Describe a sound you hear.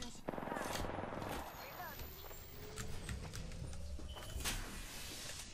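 A shield battery whirs as it charges.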